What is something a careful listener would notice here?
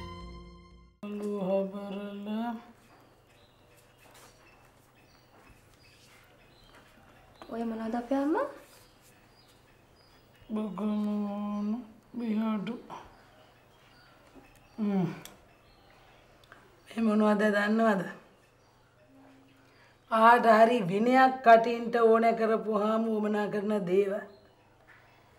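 A middle-aged woman speaks firmly, close by.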